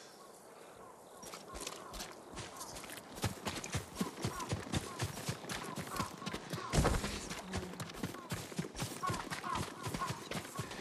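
Footsteps run quickly over grass and mud.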